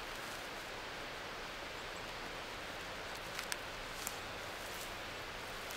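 Moss and roots rip and crackle as they are pulled from the ground.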